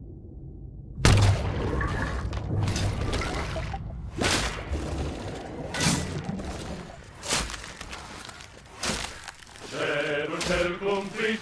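Large saws cut through ice with heavy rhythmic strokes.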